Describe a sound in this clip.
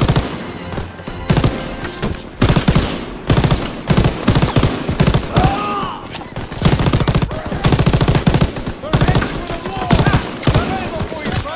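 A heavy machine gun fires in rapid bursts, close and loud.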